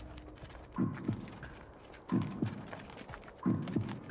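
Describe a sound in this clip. Many boots tramp quickly over dry ground.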